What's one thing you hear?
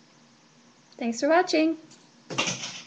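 A young woman speaks briefly in a playful, high voice close by.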